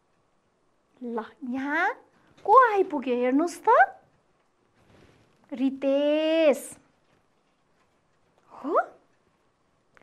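A young woman speaks clearly and expressively into a microphone.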